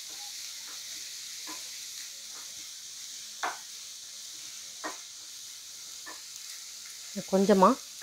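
Onions sizzle softly in hot oil.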